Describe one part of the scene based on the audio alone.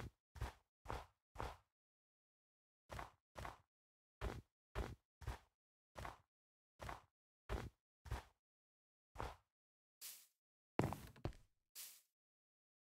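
Blocks of dirt and stone crunch as they are dug out, in short repeated bursts.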